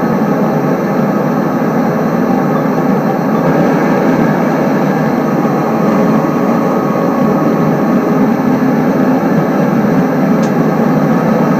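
A diesel train engine rumbles steadily as the train runs along the track.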